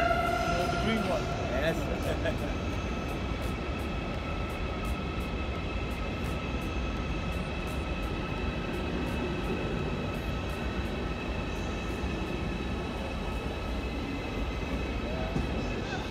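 Train brakes squeal with a high steady whine.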